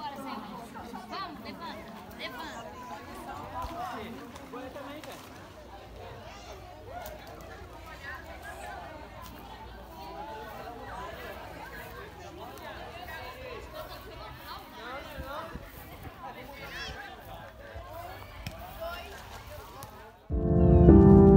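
People chatter and call out in the distance outdoors.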